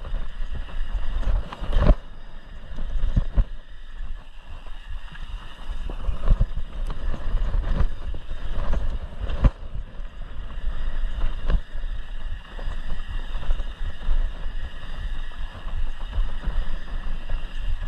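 Bike tyres rumble over a bumpy dirt trail.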